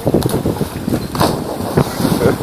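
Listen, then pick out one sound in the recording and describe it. A man splashes into shallow water.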